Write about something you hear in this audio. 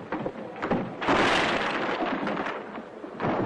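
A heavy table crashes over onto the floor.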